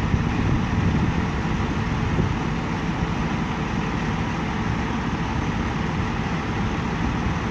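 A fire engine's diesel engine idles nearby with a steady low rumble.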